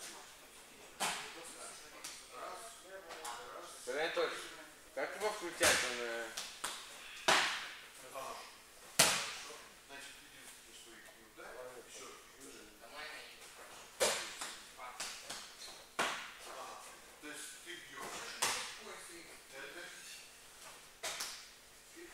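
Bodies thud onto a padded mat in a large echoing hall.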